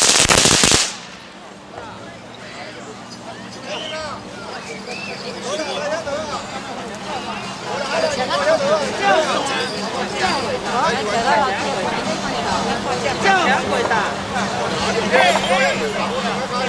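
A crowd of women chatters and calls out nearby outdoors, growing livelier.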